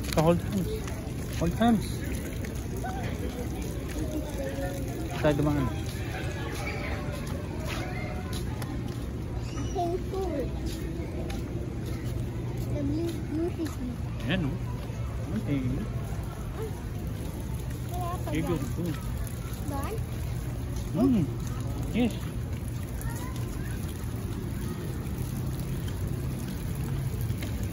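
A young boy speaks softly nearby.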